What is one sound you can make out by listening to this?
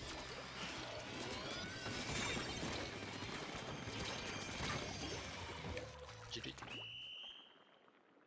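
Video game sound effects splat and burst noisily.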